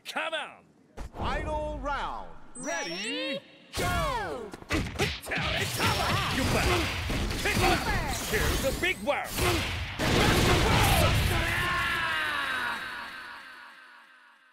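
Punches and kicks land with sharp thuds and impact bursts.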